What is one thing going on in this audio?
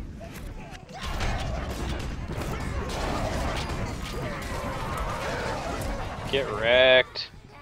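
Fiery blasts roar and crackle.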